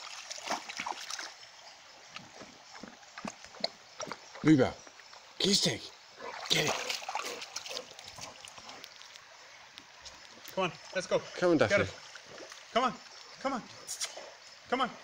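A shallow stream flows steadily.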